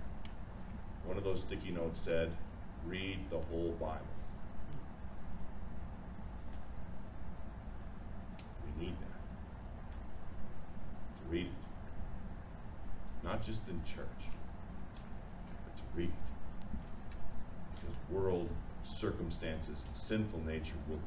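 A man speaks calmly with pauses in a room with a slight echo.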